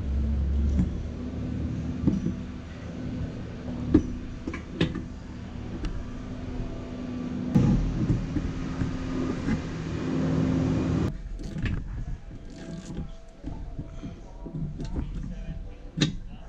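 Hard plastic parts knock and click together close by.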